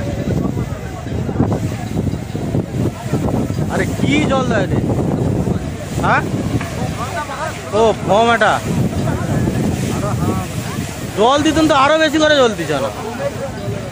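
A fire hose sprays a powerful jet of water.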